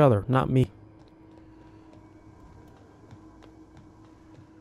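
Footsteps tap softly on a metal walkway.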